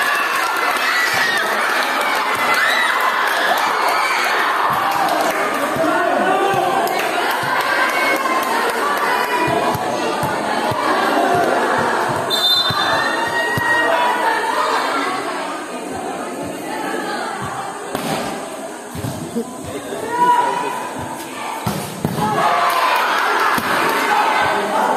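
A crowd of spectators chatters and cheers loudly in an echoing hall.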